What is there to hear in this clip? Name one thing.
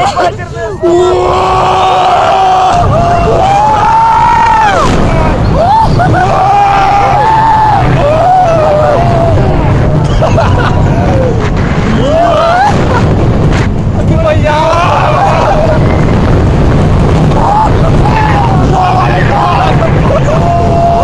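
Young men scream and whoop close by.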